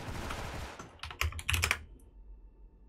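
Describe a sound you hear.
A rifle fires several quick shots.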